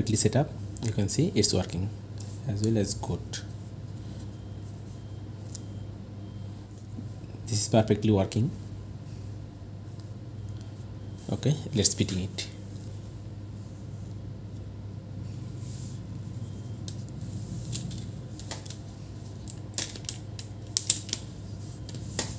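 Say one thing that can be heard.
Small plastic and metal parts click and tap as they are handled.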